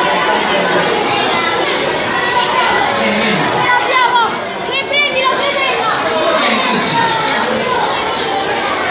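A crowd of children chatter and shout loudly in an echoing hall.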